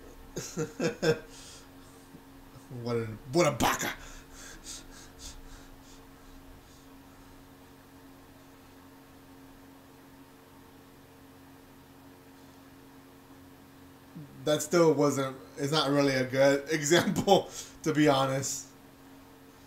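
A man talks and laughs close to a microphone, with animation.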